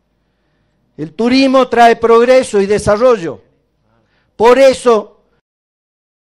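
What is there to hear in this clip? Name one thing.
A middle-aged man speaks forcefully into a microphone over loudspeakers, outdoors.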